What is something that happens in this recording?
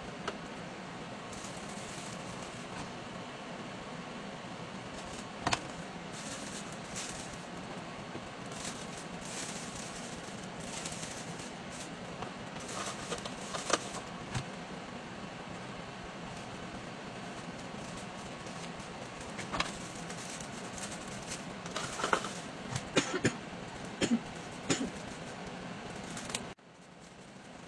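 Plastic wrap crinkles and rustles under hands.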